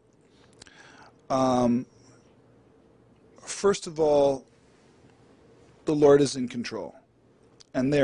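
A man speaks calmly into a nearby microphone, in short bursts with pauses.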